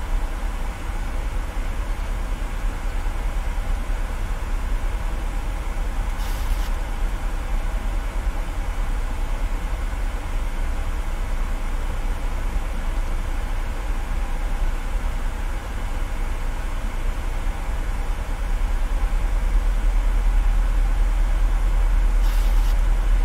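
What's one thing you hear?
A jet airliner's engines rumble with a low, steady drone.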